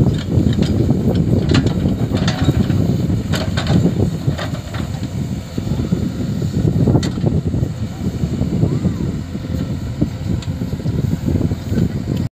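A backhoe's diesel engine rumbles steadily close by.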